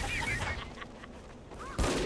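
A blast booms nearby.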